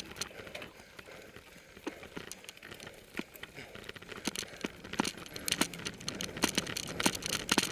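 Bicycle tyres rumble and bump over a rough grassy track.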